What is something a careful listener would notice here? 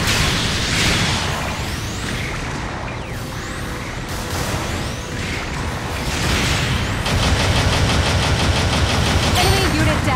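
Rocket thrusters roar steadily.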